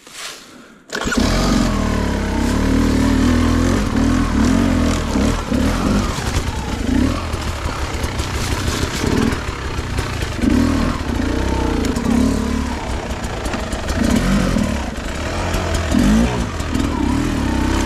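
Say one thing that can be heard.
A dirt bike engine runs loud and close, revving up and down.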